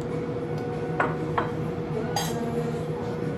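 Forks clink against plates.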